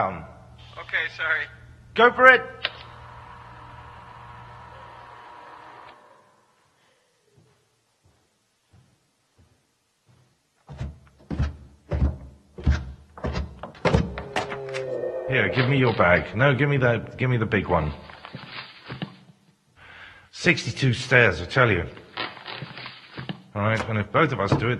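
A man speaks expressively in a large echoing room.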